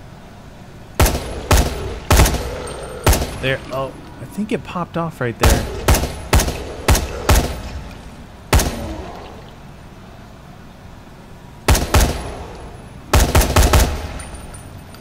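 Gunshots fire in quick bursts, echoing down a hard-walled corridor.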